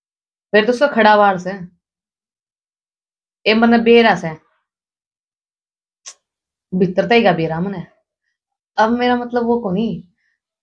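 A young woman speaks into a telephone with animation, close by.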